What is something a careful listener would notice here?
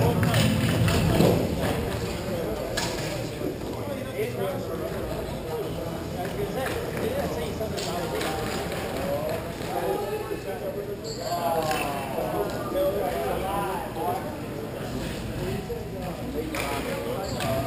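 Hockey sticks clack against a ball on a hard floor.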